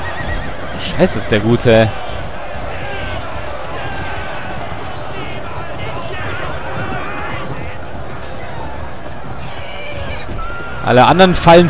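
Horses neigh loudly.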